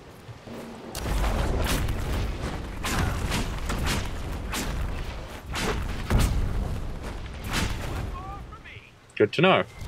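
Magic spells crackle and boom in a fight.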